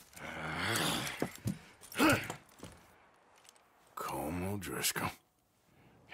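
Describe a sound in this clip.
A man speaks in a low, tense voice, close by.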